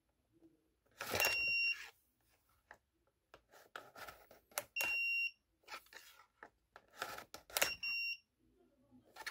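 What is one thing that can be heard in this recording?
A plastic card scrapes as it slides through a reader.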